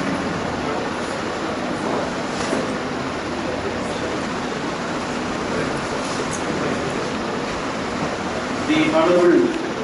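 A middle-aged man speaks calmly through a microphone in an echoing room.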